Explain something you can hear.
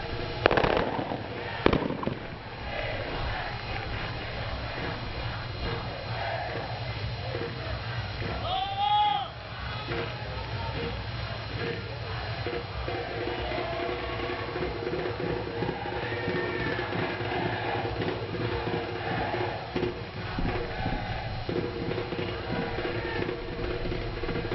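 Players shout and call to each other across an open outdoor field.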